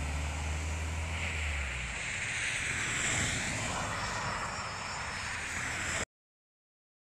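A motorhome drives past along a road.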